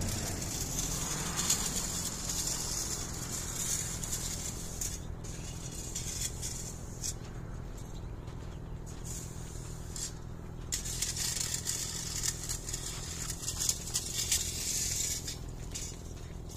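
A leaf rake scrapes through fine mulch.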